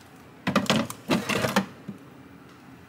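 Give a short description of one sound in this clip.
A plastic container slides out with a scrape.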